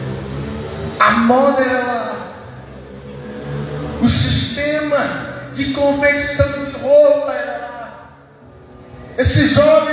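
A man speaks with animation through loudspeakers in a large echoing space.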